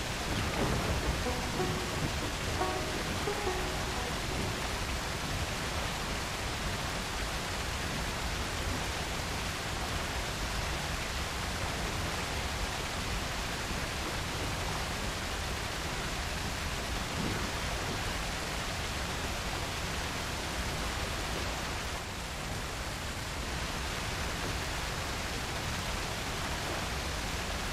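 Water churns and sloshes against a wooden boat.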